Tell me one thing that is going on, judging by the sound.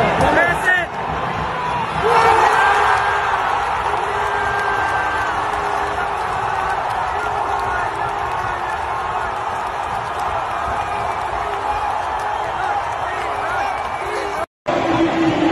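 A huge stadium crowd roars and cheers, echoing widely.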